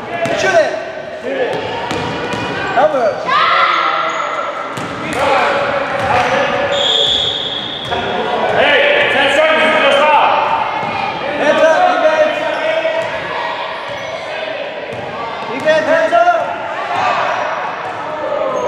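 A basketball bounces on a wooden floor with echoing thuds.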